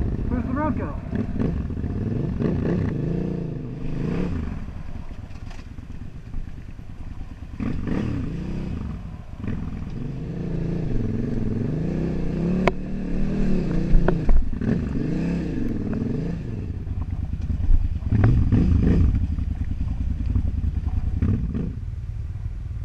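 A motorcycle engine rumbles and revs up and down.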